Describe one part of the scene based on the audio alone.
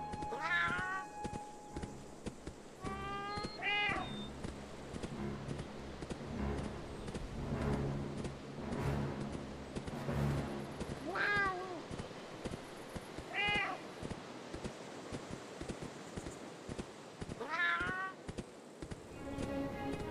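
Heavy paws thud and patter quickly on grass.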